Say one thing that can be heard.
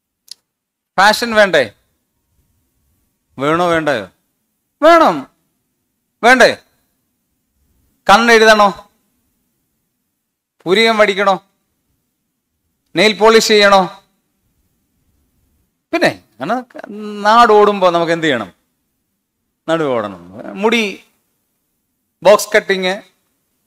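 A man speaks with animation into a microphone, in short phrases with pauses between them.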